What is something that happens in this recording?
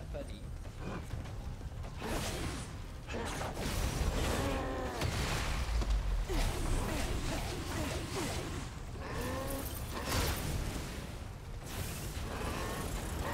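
Magic blasts whoosh and crackle in a game.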